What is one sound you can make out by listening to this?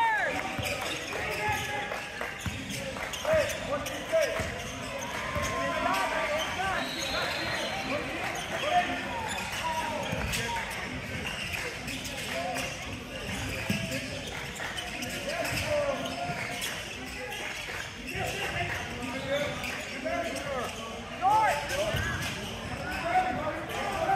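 Sneakers squeak sharply on a hardwood court, over and over.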